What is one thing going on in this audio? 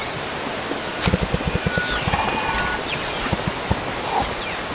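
Wet flesh tears and squelches as animals feed.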